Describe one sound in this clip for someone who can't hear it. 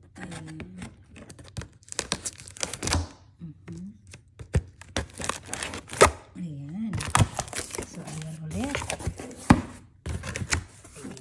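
A cardboard box rustles and knocks as it is handled up close.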